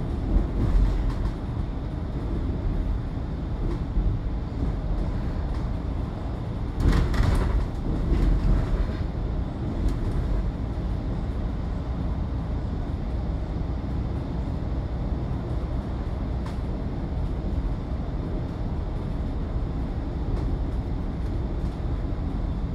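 A vehicle's engine rumbles steadily while driving along a road.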